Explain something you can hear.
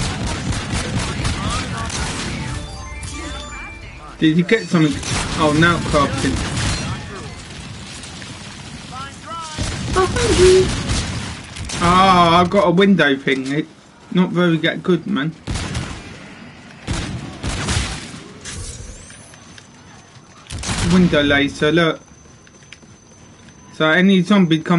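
Gunshots fire rapidly in a video game.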